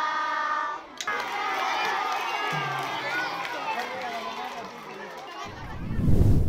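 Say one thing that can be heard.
Children chatter and call out excitedly.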